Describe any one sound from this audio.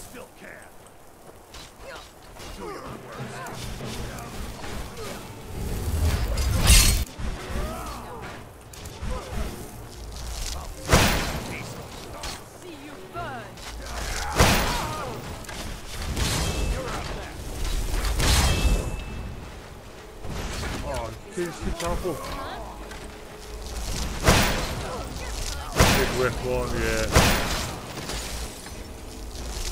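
Magic spells crackle and burst in sharp blasts.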